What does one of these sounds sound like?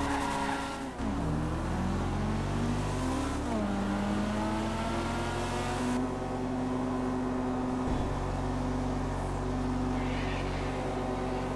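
A car engine hums and revs gently nearby.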